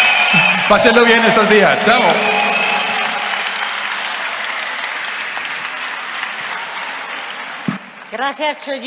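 A large crowd applauds in an echoing hall, and the applause slowly fades.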